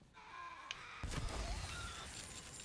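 A heavy punch lands with a deep thud.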